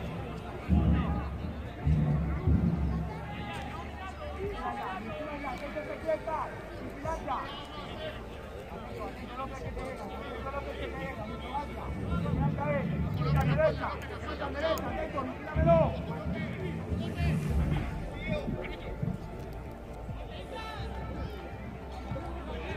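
Men shout to each other across an open field outdoors.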